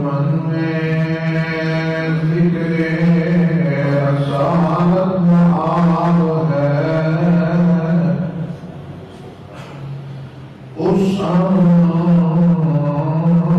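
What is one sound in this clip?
An elderly man chants in a long, drawn-out melodic voice through a microphone, pausing briefly before resuming.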